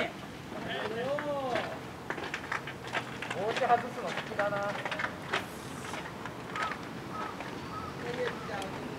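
Young men shout calls across an open ball field outdoors.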